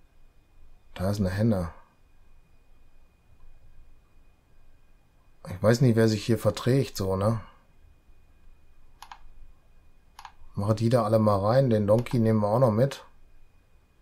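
A middle-aged man talks calmly and close to a microphone, in short bursts.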